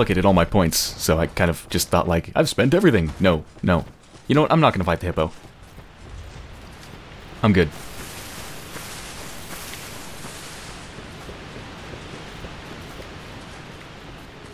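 Footsteps run across rough ground.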